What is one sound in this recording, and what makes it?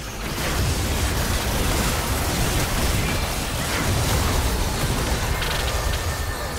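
Magic blasts and spell effects crackle and boom in a busy video game fight.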